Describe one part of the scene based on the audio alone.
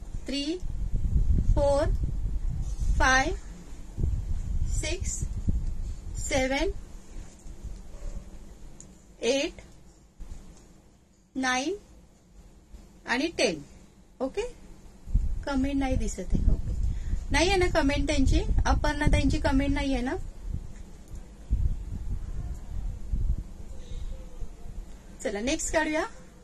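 A middle-aged woman talks calmly and close to a microphone.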